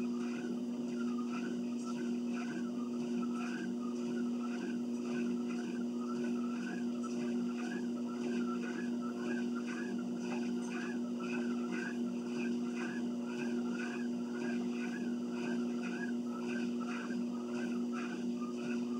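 Footsteps thud on a treadmill belt in a steady rhythm.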